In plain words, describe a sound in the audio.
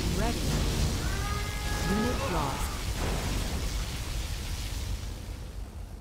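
A powerful energy beam roars and crackles with a deep rumble.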